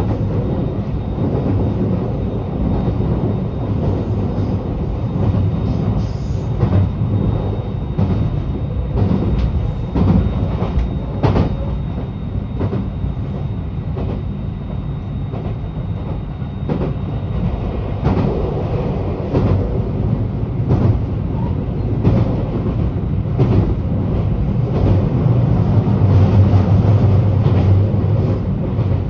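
Tyres rumble over the road.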